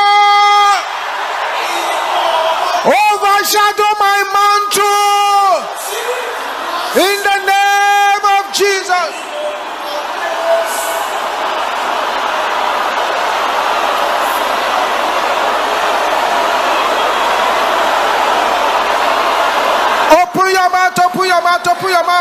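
A man preaches loudly into a microphone.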